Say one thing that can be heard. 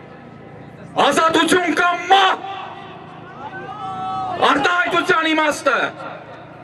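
A man speaks loudly and with passion into a microphone, outdoors.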